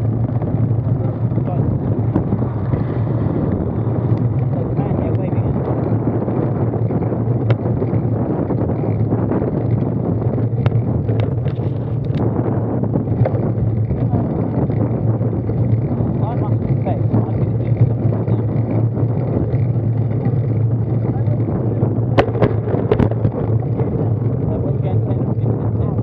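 Road bicycle tyres roll on asphalt.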